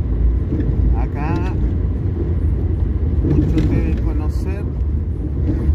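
A car rumbles steadily along a road.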